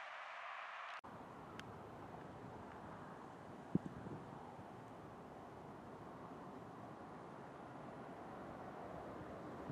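An approaching airliner rumbles steadily in the distance.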